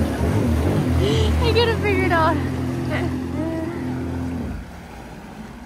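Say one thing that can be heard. A personal watercraft engine roars and revs up close.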